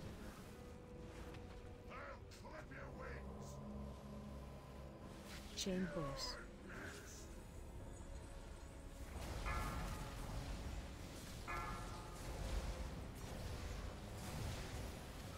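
Magic spells crackle and burst with whooshing blasts.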